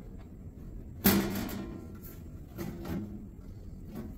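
A metal panel rattles and clanks as it is handled.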